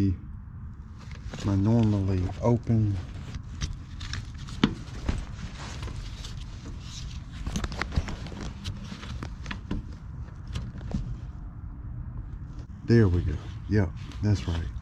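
Gloved hands rustle and click against wires and plastic parts.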